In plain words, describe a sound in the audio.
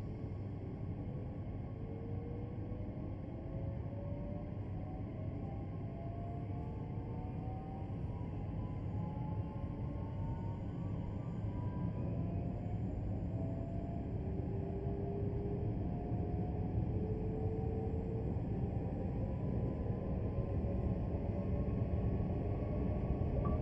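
Train wheels rumble steadily on the rails, growing louder.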